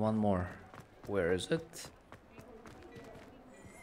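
Footsteps run across cobblestones.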